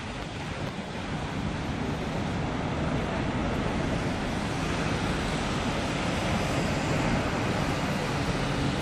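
Wind buffets a microphone outdoors in a steady rushing roar.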